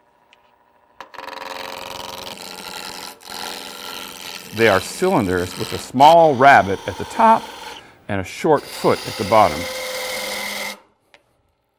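A gouge scrapes against spinning wood with a rough hiss.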